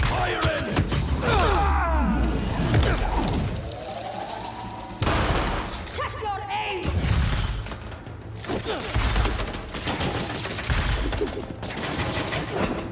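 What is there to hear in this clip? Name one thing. Heavy punches and kicks land with thuds and cracks.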